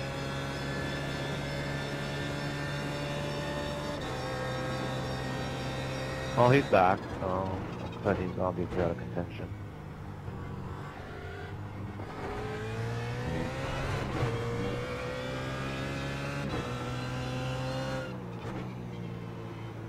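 A race car engine roars steadily at high revs and climbs through the gears.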